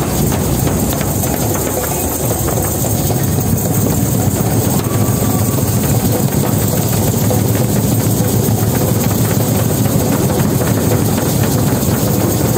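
Many hand drums beat together in a large echoing hall.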